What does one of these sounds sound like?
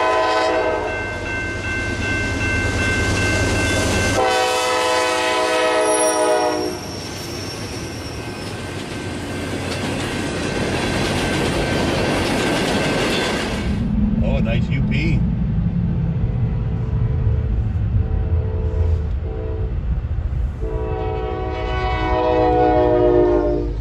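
A train horn blares loudly.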